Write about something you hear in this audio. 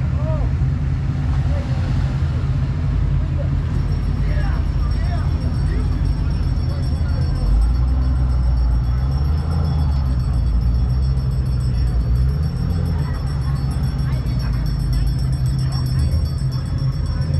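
A car engine idles with a deep, steady rumble close by.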